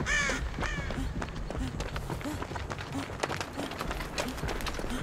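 Quick footsteps run over leaves and soft ground.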